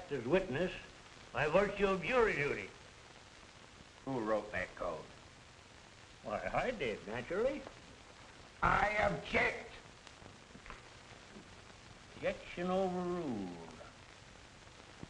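An older man speaks sternly nearby.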